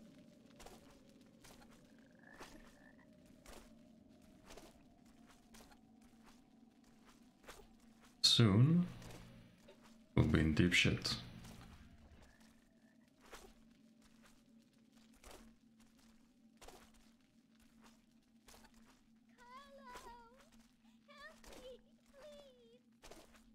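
Footsteps thud at an even pace on a dirt floor.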